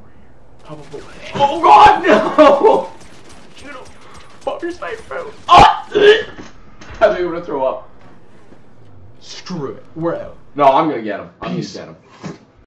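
A young man shouts and laughs excitedly into a nearby microphone.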